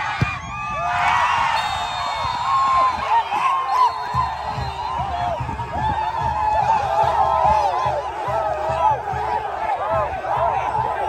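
A crowd cheers loudly and players shout in celebration.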